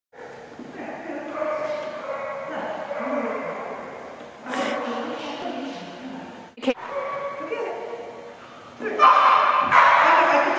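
A woman talks encouragingly to a dog nearby.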